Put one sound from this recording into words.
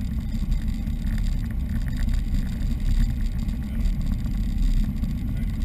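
A small plane's engine drones loudly and steadily.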